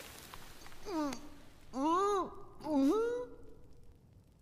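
A young man makes muffled sounds behind his hands.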